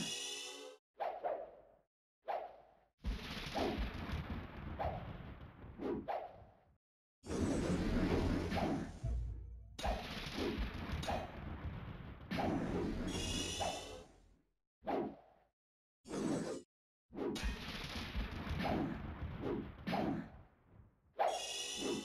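Sword strikes land again and again in a melee fight.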